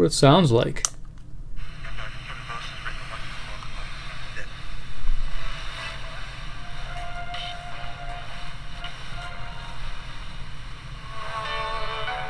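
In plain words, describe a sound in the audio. A small radio crackles and hisses with static as it is tuned.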